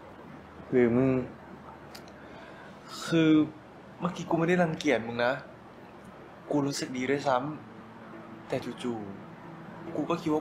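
A second young man speaks calmly in a low voice, close by.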